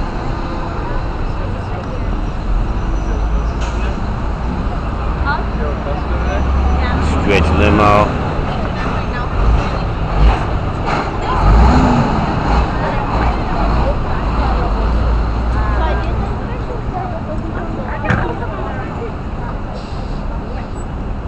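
Busy city traffic rumbles steadily outdoors.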